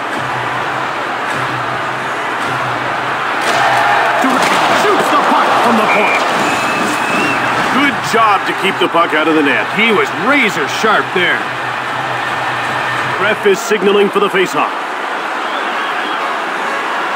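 A large crowd murmurs and roars steadily in an echoing arena.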